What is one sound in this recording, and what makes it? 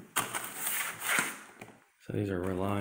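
A hand rubs and scrapes against a metal panel.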